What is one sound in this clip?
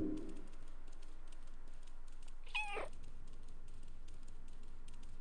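Soft paw steps patter on a hard floor.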